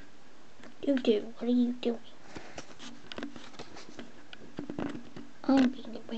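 Paper pages rustle softly as a book is handled.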